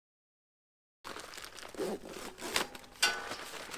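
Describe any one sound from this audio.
A plastic tarp rustles and crinkles.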